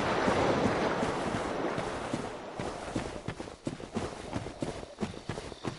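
Armoured footsteps crunch steadily through undergrowth.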